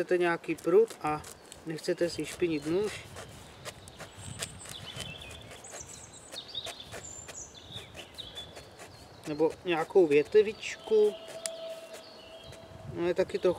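A knife scrapes and shaves thin curls from a dry stick.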